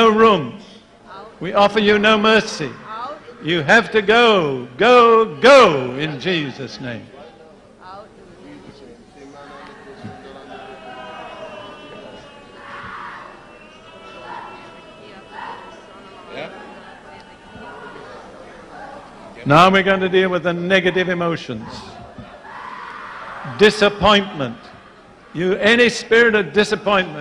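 An elderly man preaches forcefully into a microphone.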